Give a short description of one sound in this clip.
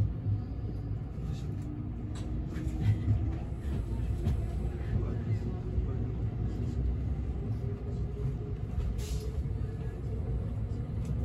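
A train's motor whines in a slowly rising pitch.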